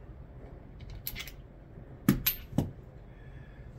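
Metal parts click and tap as a fixture is handled.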